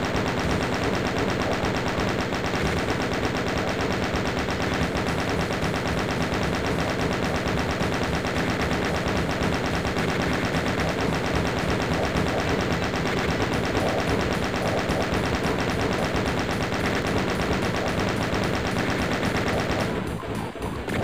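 A machine gun fires in a fast, steady rattle.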